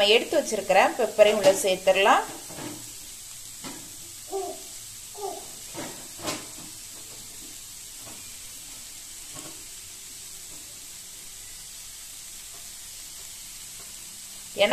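Grated vegetables sizzle softly in a hot pan.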